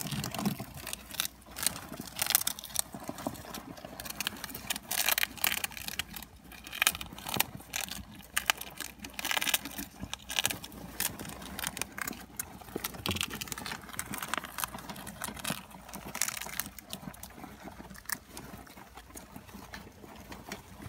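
Hamsters gnaw on a treat.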